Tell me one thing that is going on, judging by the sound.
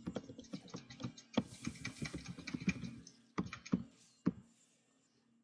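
Game spell effects crackle and thump in quick bursts.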